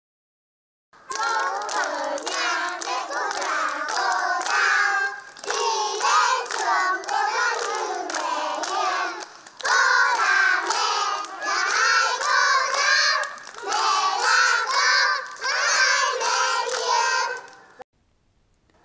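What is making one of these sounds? Children clap their hands in rhythm.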